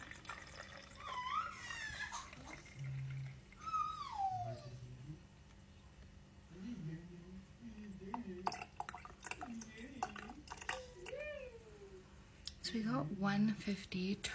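Milk trickles into a plastic bottle.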